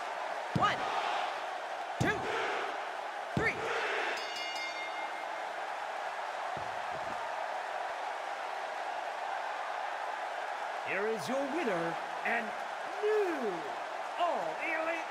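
A large crowd cheers and murmurs steadily in an echoing arena.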